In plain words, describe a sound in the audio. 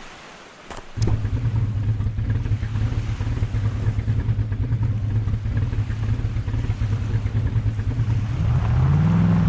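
An engine of an eight-wheeled off-road truck drones at a steady pitch.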